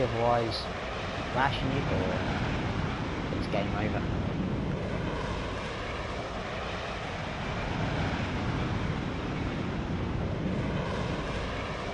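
A jet engine roars steadily in flight.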